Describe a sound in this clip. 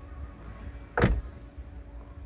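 A body lands with a heavy thud.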